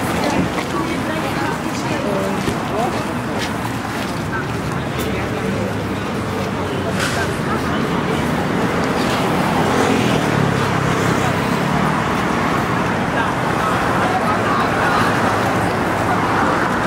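Traffic hums steadily along a nearby road outdoors.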